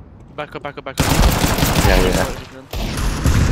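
Pistol shots fire in quick succession.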